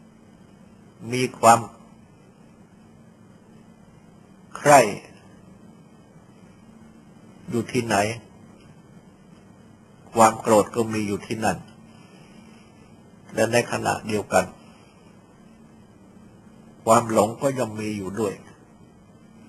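An elderly man speaks slowly in short phrases, with long pauses between them.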